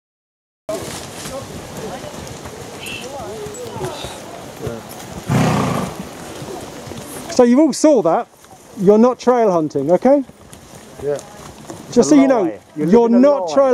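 Horses' hooves thud on a woodland path.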